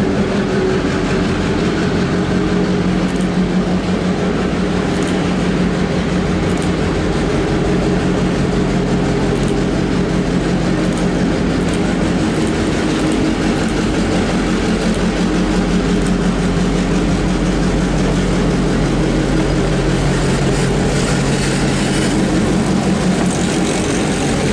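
A diesel locomotive engine rumbles steadily as it approaches and passes close by.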